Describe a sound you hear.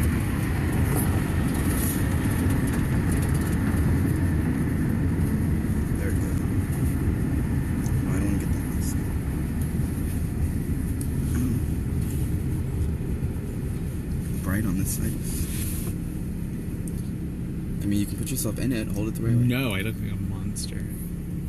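A car's engine and tyres rumble steadily from inside the car.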